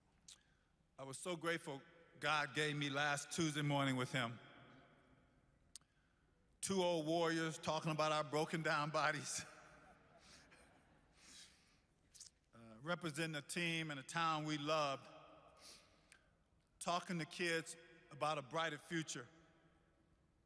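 A man speaks slowly and with feeling into a microphone, with long pauses, in a large echoing hall.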